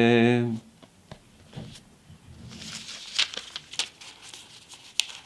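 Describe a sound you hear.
A man speaks softly and quietly, close to the microphone.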